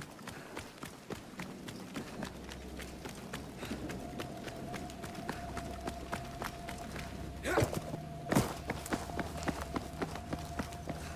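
Footsteps splash steadily on wet ground.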